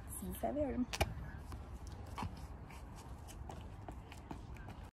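Footsteps tap on pavement, moving away.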